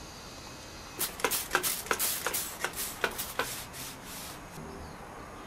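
A cloth rubs briskly against a plastic surface.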